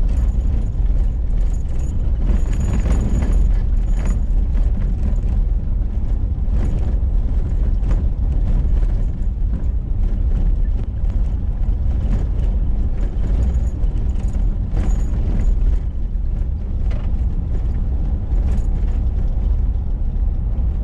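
Small stones knock against the underside of the car.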